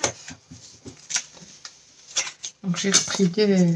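Paper rustles briefly as it is handled.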